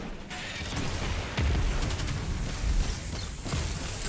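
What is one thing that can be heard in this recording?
Explosions boom with bright crackling blasts.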